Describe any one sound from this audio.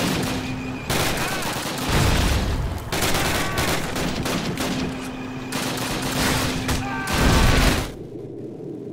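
A submachine gun fires loud rapid bursts.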